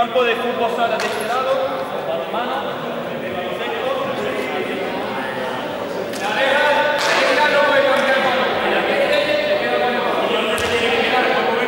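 A ball bounces on a hard floor.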